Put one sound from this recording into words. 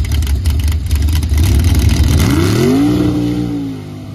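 Big tyres spin and fling mud.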